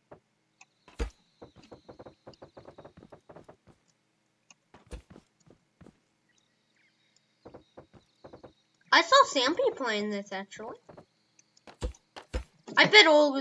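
Wooden blocks knock sharply into place.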